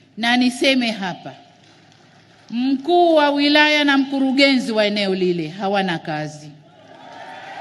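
A woman speaks forcefully into a microphone over loudspeakers.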